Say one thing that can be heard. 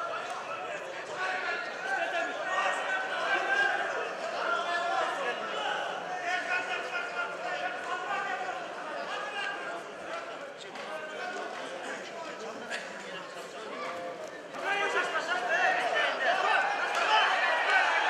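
A large crowd chatters and shouts in an echoing hall.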